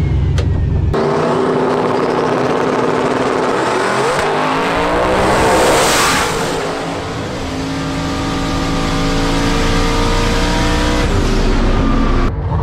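A race car engine roars as it launches down the track.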